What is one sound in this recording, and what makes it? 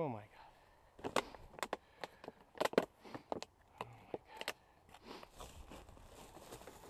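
Plastic bottles crackle and crinkle as they are picked up and handled close by.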